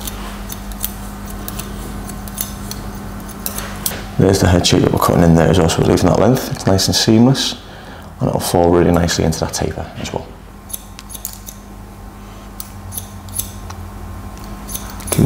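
Scissors snip through hair in quick, crisp cuts.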